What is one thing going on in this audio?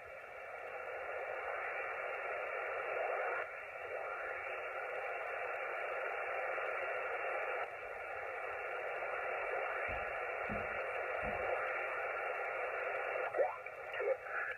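Radio static hisses from a small loudspeaker as a receiver is tuned across stations.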